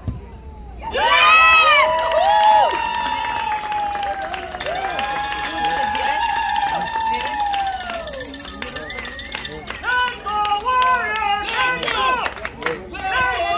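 Young players cheer and shout loudly outdoors.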